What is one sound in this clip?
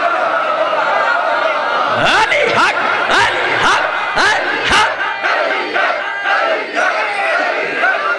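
A man speaks passionately into a microphone over loudspeakers, in an echoing space.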